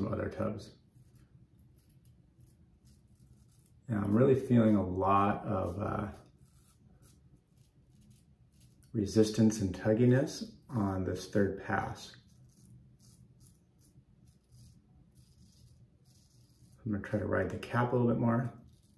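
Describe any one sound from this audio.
A razor scrapes through stubble.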